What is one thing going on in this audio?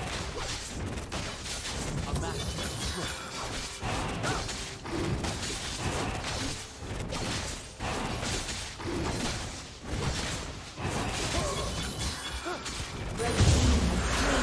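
Fantasy battle effects clash and crackle as fighters strike a dragon.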